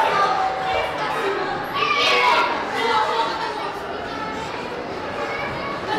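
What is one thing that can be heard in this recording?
Footsteps shuffle down concrete stairs.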